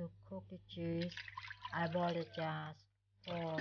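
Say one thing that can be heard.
Water pours into a pot and splashes.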